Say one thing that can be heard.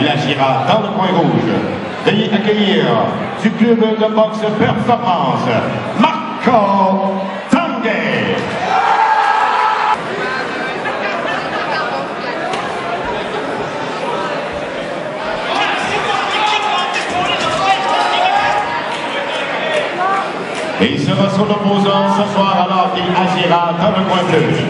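A man announces loudly through a microphone over loudspeakers in a large echoing hall.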